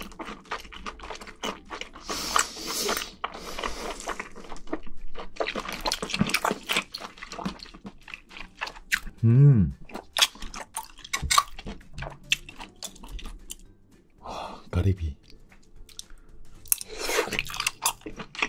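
A young man chews and slurps food close to a microphone.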